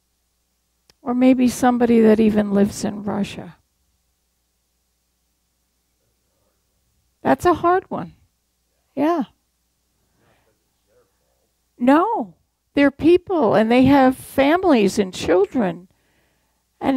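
An elderly woman speaks calmly into a microphone, with pauses between phrases.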